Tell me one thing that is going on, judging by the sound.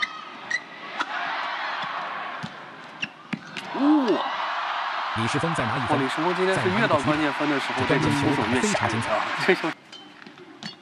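A large crowd cheers and applauds in an echoing hall.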